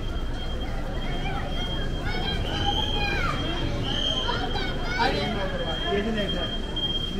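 Men and women talk nearby with animation.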